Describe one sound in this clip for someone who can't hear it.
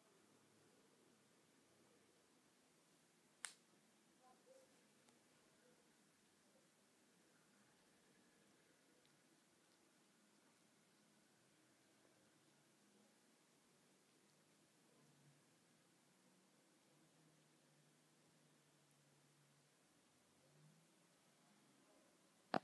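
A cat licks its fur with soft wet laps, close by.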